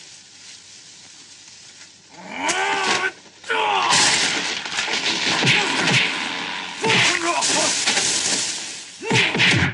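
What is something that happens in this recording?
A man grunts and shouts with effort up close.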